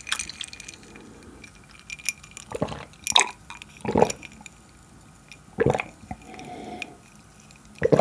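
A young man gulps a drink loudly close to a microphone.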